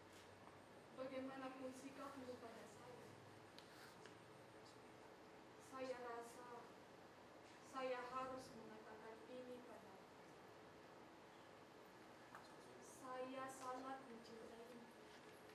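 A woman sings slowly in short, drawn-out phrases.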